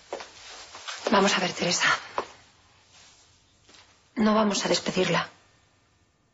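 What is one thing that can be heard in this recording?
Another young woman answers up close.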